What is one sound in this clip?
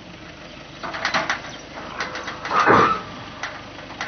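A soldier jumps down from the back of a truck with a thud.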